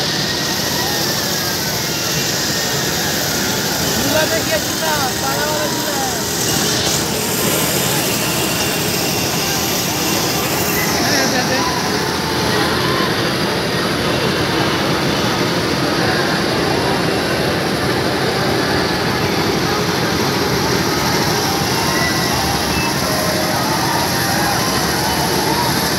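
Fairground music plays loudly over loudspeakers.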